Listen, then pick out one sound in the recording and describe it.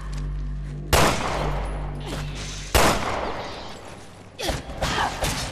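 Gunshots crack loudly and echo.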